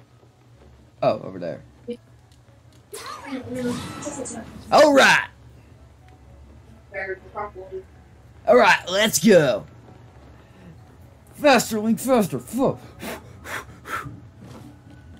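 A young man talks excitedly into a microphone, sometimes shouting.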